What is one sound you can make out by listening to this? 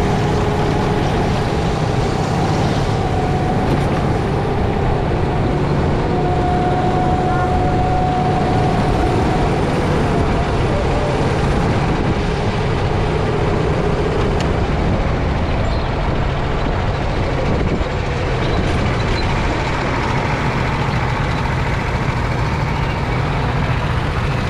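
Other go-kart engines whine nearby.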